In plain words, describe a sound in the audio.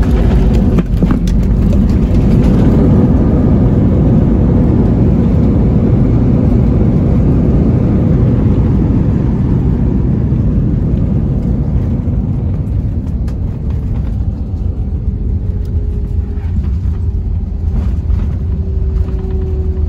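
A jet plane roars loudly as it rolls down the runway and slowly eases off.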